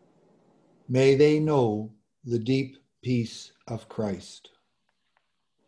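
An elderly man speaks calmly, heard through an online call.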